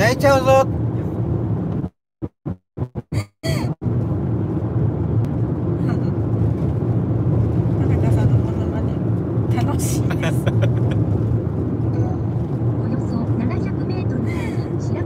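A car engine and road noise rumble steadily.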